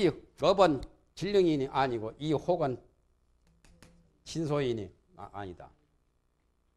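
A man lectures calmly into a microphone, pausing between phrases.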